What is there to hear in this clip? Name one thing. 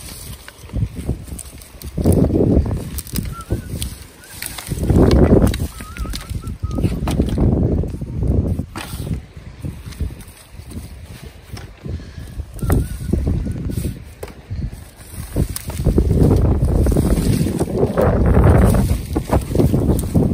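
Dry twigs and brush crackle and snap as sticks are gathered by hand.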